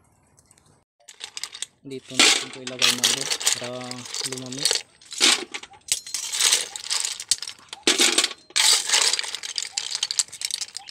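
Clam shells clatter and clink.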